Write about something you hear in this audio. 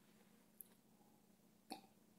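A spoon clinks down onto a plate.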